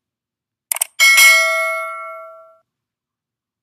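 A small bell rings once and slowly fades.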